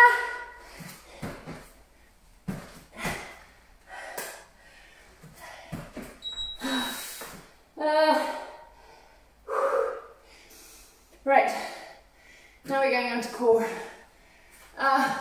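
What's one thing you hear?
A woman talks, giving workout instructions close to the microphone.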